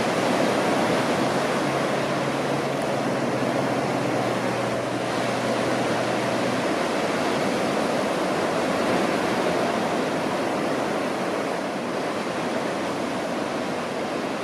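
Waves break and wash onto a shore.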